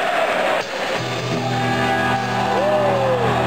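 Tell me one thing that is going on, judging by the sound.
A rock band starts playing loudly in a large echoing hall.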